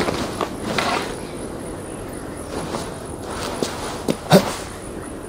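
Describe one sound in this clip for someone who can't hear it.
Hands and boots scrape and thud on rock as a climber scrambles up.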